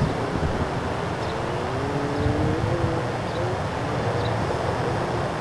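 A man calls out commands from a distance outdoors.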